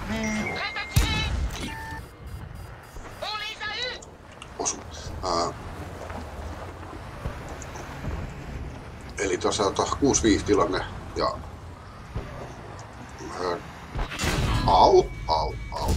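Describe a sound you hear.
A tank cannon fires with a loud, deep boom.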